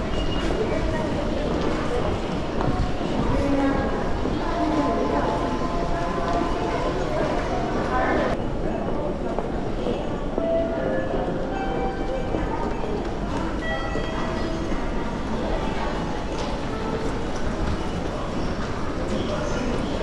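Many footsteps shuffle and tap on a hard floor.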